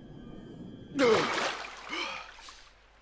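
Water splashes loudly as a swimmer bursts up through the surface.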